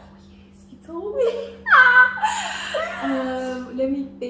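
Two young women laugh loudly together.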